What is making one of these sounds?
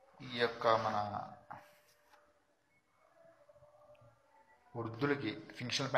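A man speaks calmly and close up, in short phrases.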